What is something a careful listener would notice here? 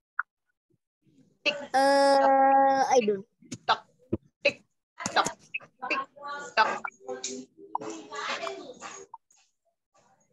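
A woman laughs through an online call.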